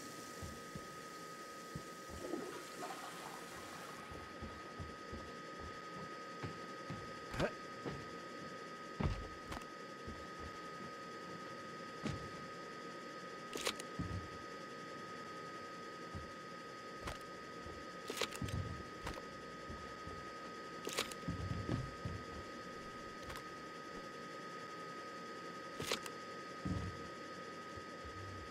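Footsteps thud softly across a wooden floor.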